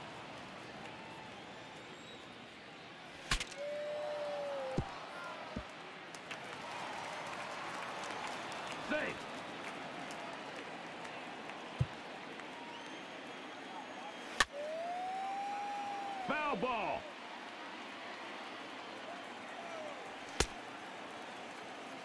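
A stadium crowd murmurs and cheers.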